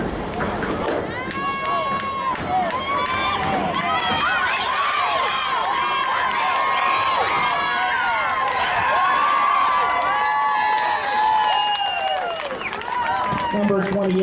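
Spectators on the sideline cheer and shout outdoors.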